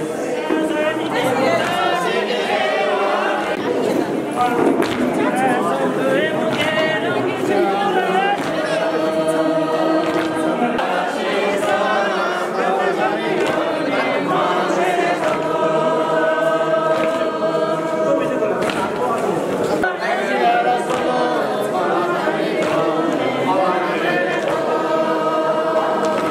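A group of women sing together nearby.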